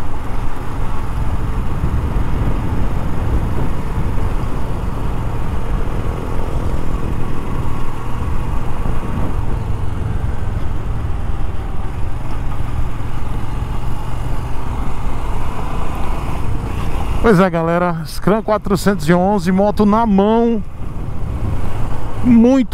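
Wind buffets a microphone on a moving motorcycle.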